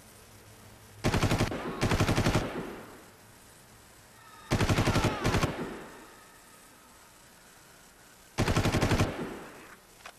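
A rifle fires loud rapid bursts, with short echoing tails.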